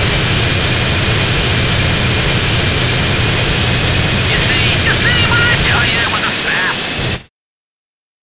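A jet engine roars steadily, then cuts off.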